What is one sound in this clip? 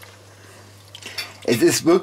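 Cream pours into a pan with a soft splash.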